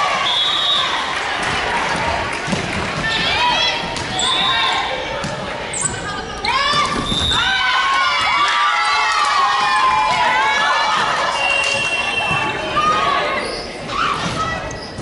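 Young women shout and cheer loudly in a large echoing hall.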